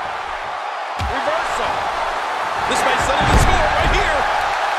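A body slams heavily onto a wrestling mat with a thud.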